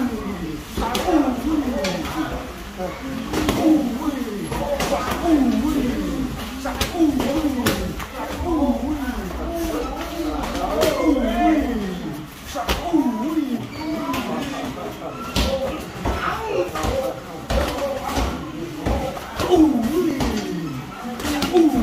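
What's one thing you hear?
Gloves and shins thud and smack against padded mitts in quick bursts.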